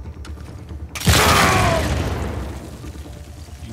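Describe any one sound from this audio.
A gunshot bangs and echoes away.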